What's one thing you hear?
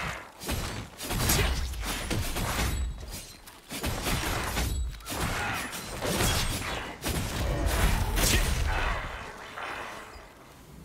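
Weapons clash and magic effects burst in quick, loud strikes.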